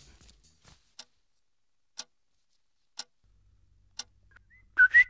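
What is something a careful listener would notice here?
A wall clock ticks slowly.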